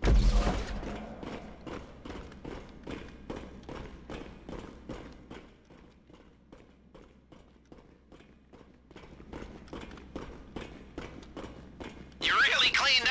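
Many boots run fast on a metal grating, echoing in a tunnel.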